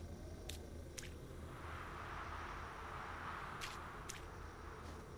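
A paint brush makes short, sharp swishing clicks in quick pairs.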